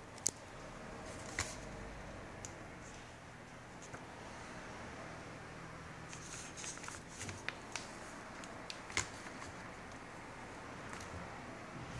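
A sheet of paper rustles and crinkles as it is handled.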